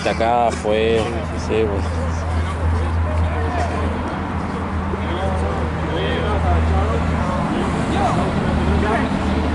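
Young men shout and call out to each other outdoors, some close and some farther off.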